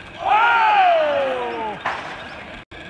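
A man shouts a long call outdoors.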